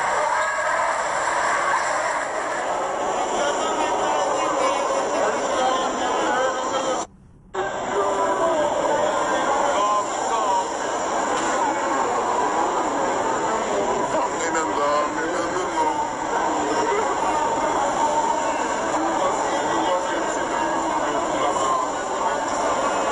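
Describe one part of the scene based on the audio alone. A large crowd shouts and chatters, echoing in a large hall.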